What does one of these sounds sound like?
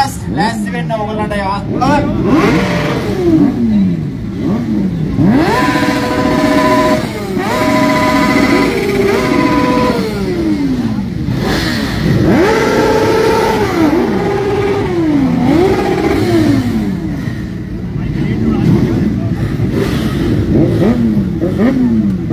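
Motorcycle engines rev up and down loudly, over and over.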